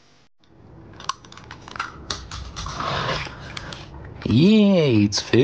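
Small plastic toy cars clack and knock on a wooden table.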